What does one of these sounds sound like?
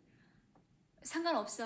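A woman speaks briefly in a higher voice.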